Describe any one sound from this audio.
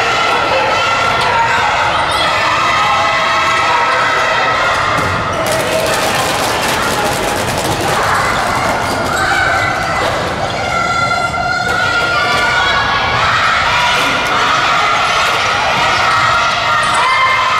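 A crowd of spectators cheers and chants loudly in a large echoing hall.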